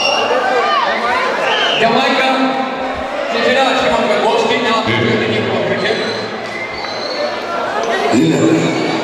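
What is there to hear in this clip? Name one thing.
A crowd chatters in a busy, echoing hall.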